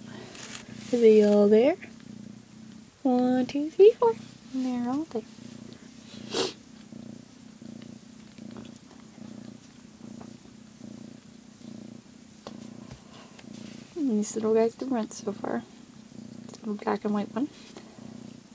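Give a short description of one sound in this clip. A cat meows repeatedly up close.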